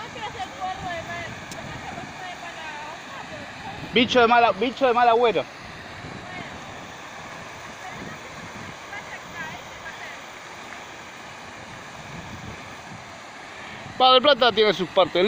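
Water trickles over rocks nearby.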